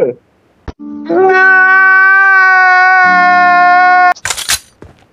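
A man wails loudly, sobbing.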